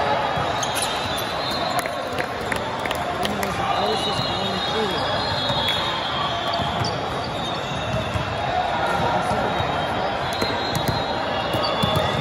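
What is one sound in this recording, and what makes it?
Young men shout and call to each other during play.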